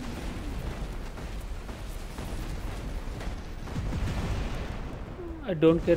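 Heavy guns fire in bursts of loud blasts.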